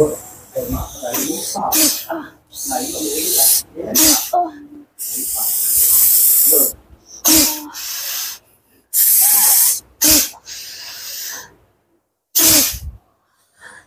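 A woman speaks close by in short, breathy bursts.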